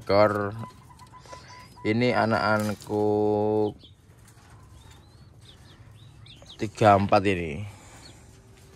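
A dove coos loudly close by in short deep bursts.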